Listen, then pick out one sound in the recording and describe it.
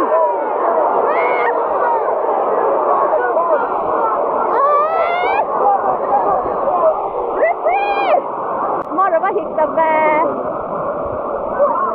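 A large stadium crowd sings and chants loudly throughout.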